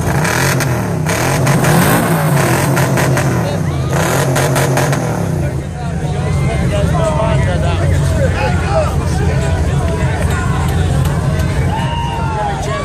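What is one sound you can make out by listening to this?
A crowd of men cheer and shout outdoors.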